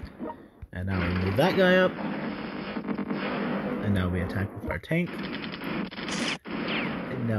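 Explosions rumble and crash.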